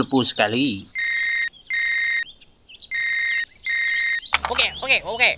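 A phone rings in repeated electronic bursts.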